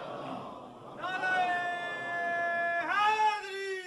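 A middle-aged man chants in long, drawn-out notes through a microphone.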